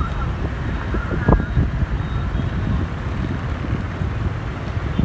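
Motor scooters pass on a street.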